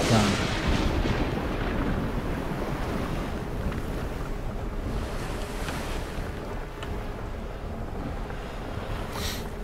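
Stormy waves crash and roar around a sailing ship.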